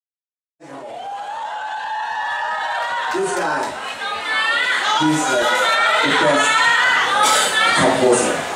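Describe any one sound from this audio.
A young man sings loudly into a microphone, heard through loudspeakers.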